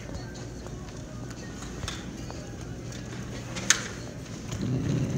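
Suitcase wheels roll over a hard floor.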